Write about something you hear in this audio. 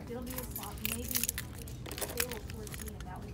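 Keys jingle on a key ring.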